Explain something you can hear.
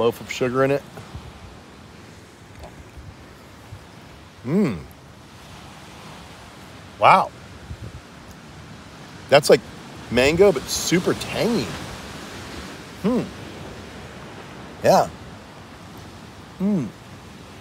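A middle-aged man slurps and chews fruit.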